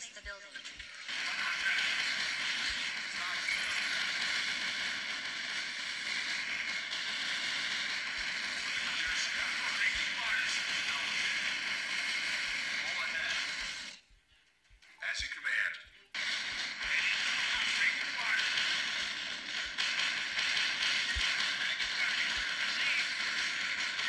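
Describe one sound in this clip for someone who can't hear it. Gunfire crackles in a video game battle.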